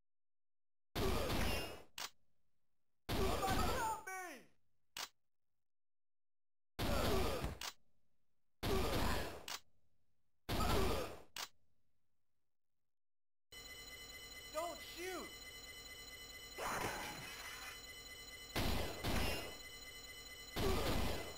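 Gunshots bang out in loud single bursts with a short ringing tail.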